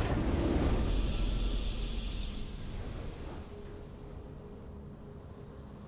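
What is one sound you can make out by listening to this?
A video game victory fanfare plays and fades.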